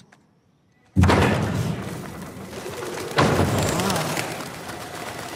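Birds flap their wings as they take off in an echoing hall.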